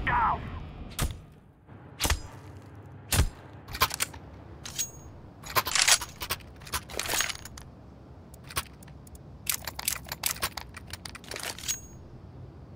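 Short sharp clicks sound in quick succession.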